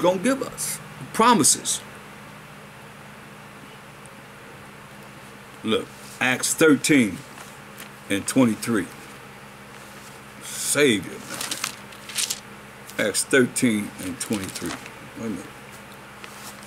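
An elderly man speaks calmly and slowly in pauses, close to the microphone.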